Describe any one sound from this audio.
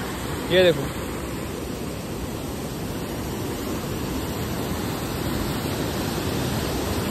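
A fast mountain stream rushes and roars over rocks, outdoors.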